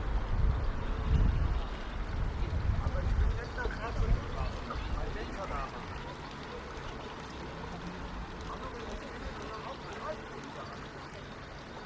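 Water trickles and splashes steadily from a fountain into a basin.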